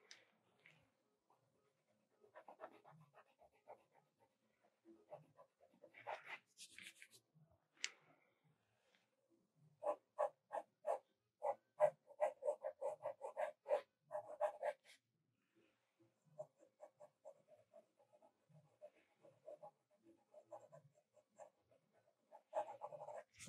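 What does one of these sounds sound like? A pencil scratches in quick strokes on paper.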